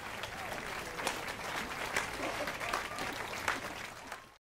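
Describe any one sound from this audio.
A man claps his hands slowly.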